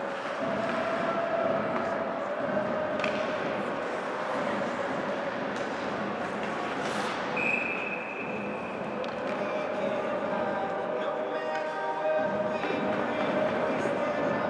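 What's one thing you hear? A crowd murmurs and cheers in a large echoing arena.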